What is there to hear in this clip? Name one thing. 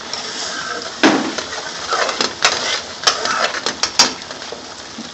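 A metal spoon clinks and scrapes against a pan.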